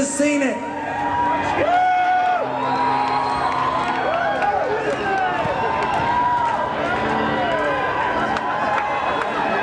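An amplified acoustic-electric guitar strums steadily.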